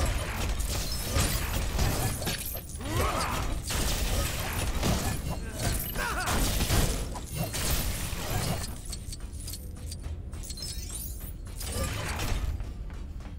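Blasters fire and zap in quick bursts.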